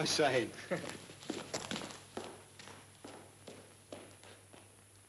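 Footsteps walk away on a hard floor and fade.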